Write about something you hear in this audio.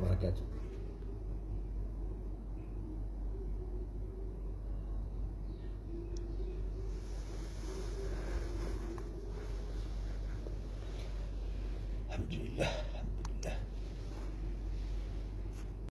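A middle-aged man speaks calmly, close to a phone microphone.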